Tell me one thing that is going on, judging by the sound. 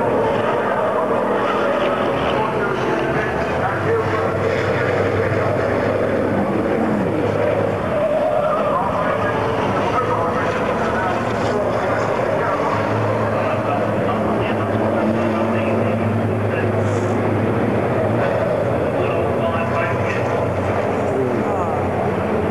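Diesel racing trucks roar around a circuit at speed, heard from a distance.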